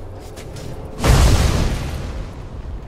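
A bolt of lightning crackles sharply.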